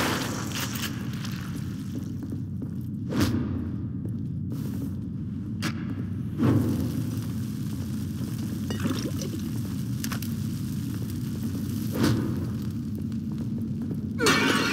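Footsteps scuff slowly on a stone floor.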